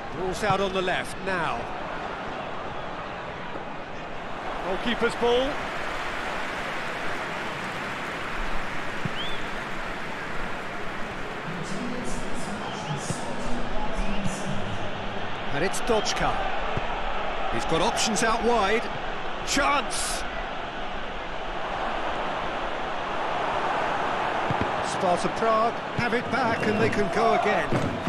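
A stadium crowd roars and murmurs steadily.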